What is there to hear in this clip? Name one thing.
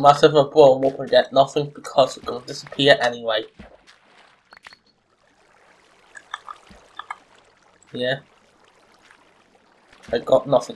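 Water splashes softly as a swimmer moves through it.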